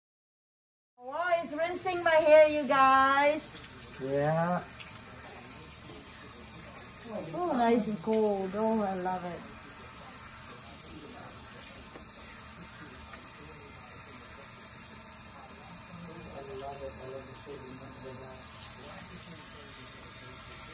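Water sprays from a hose and splashes into a basin.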